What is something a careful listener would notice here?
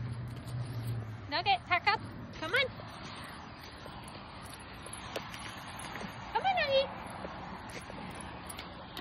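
A small dog's paws patter across grass.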